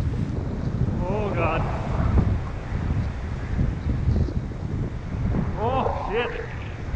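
A man calls out nearby.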